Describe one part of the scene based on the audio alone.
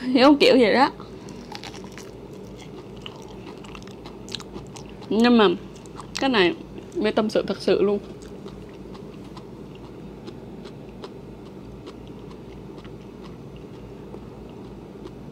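A young woman bites into a crisp fruit and chews.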